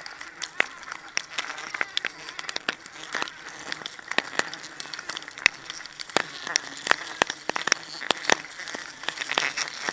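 Bamboo poles knock and clatter against a tree trunk.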